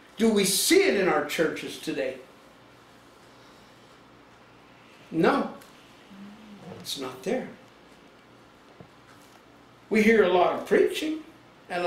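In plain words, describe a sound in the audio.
A middle-aged man speaks with animation in short bursts, with pauses between them.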